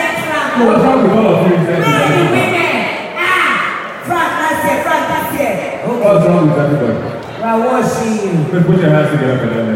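A woman speaks through loudspeakers in a large echoing hall.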